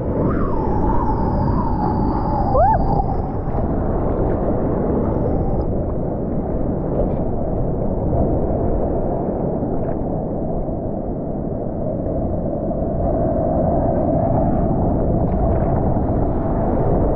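Water sloshes and laps right at the microphone.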